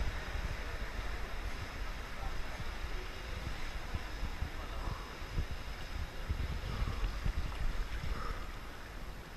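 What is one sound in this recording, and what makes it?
A swimmer splashes through water.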